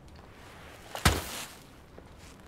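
A heavy thud hits packed snow.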